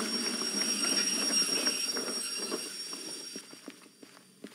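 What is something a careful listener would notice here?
A steam locomotive hisses loudly nearby and then fades.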